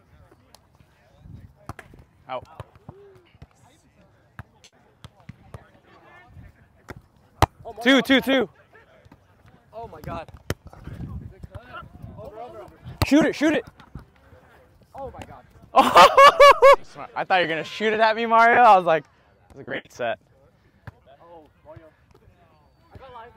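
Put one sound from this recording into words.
A volleyball thumps off players' hands and forearms now and then.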